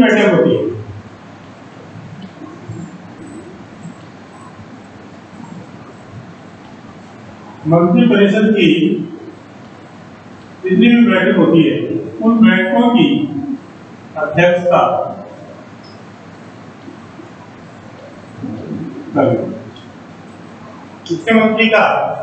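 A middle-aged man speaks calmly in short bursts, close by, with pauses between.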